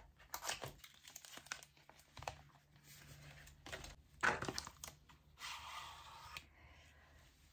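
Cardboard packaging rustles and taps in hands.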